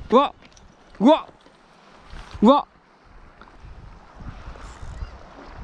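Calm water laps gently against a concrete edge.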